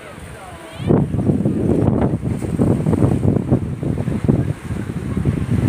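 Waves splash and wash against rocks.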